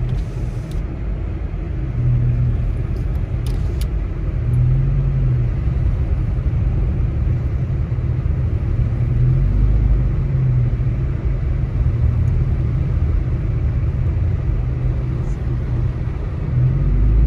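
Tyres hiss through slush on the road.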